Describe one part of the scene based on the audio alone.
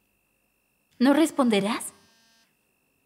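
A young woman speaks with urgency, close by.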